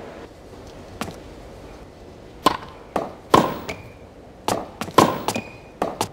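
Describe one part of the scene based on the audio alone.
Tennis balls are struck with sharp racket hits, back and forth.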